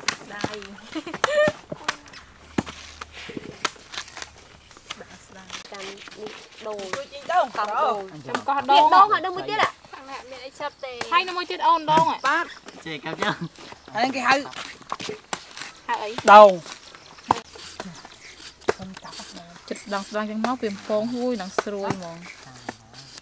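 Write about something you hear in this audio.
Young women talk and chat close by.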